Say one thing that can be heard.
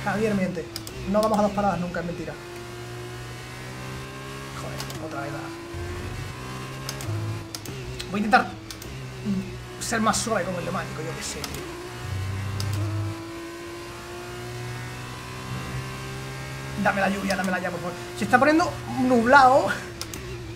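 A racing car engine whines steadily, shifting pitch as gears change.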